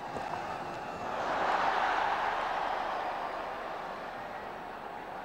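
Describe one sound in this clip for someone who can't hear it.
A large crowd cheers and roars, swelling then fading.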